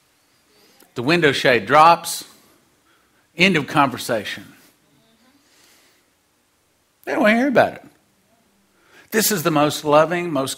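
A middle-aged man preaches with animation through a microphone, in bursts with pauses.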